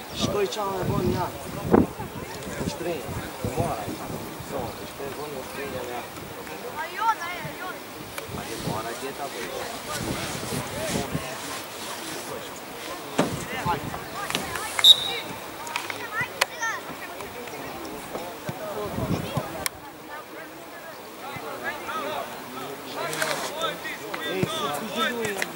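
Young players call out to each other across an open field outdoors.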